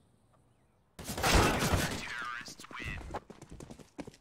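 Loud gunshots crack in quick bursts.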